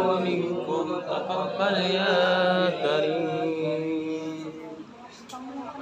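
A group of men chant together in unison, loud and close.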